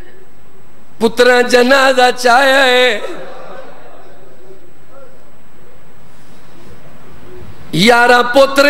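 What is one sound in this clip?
A man recites loudly and passionately into a microphone, his voice echoing through loudspeakers.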